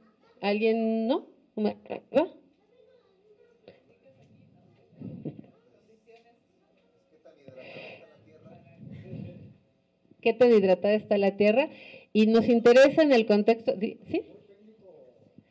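A woman speaks with animation into a microphone, her voice amplified over loudspeakers.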